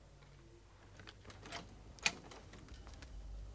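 A door opens with a click.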